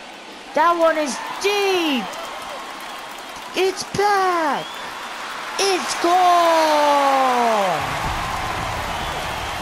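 A crowd cheers loudly, swelling.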